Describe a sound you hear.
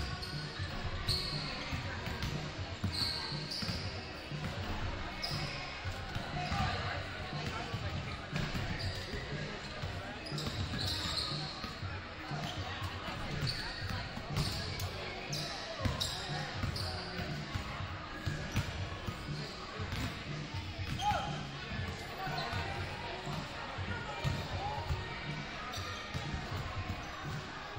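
Basketballs bounce on a wooden court in a large echoing gym.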